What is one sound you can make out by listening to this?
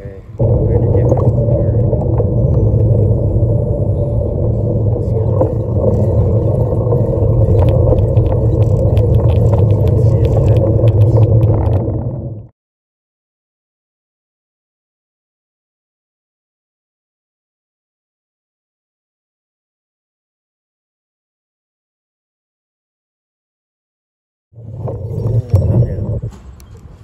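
Hard wheels rumble loudly over rough asphalt.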